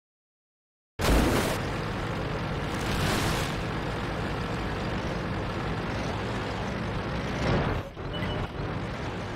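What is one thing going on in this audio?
A tank engine rumbles steadily as it drives along.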